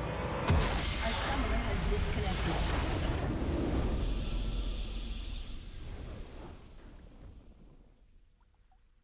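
A triumphant game fanfare bursts out with a deep boom and slowly fades away.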